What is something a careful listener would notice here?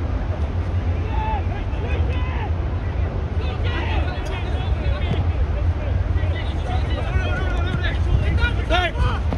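Young men shout and call to each other across the field.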